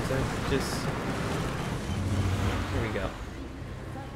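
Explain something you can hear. A young man speaks casually into a microphone.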